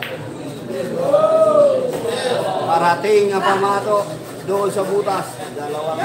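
Pool balls knock together and roll on the table.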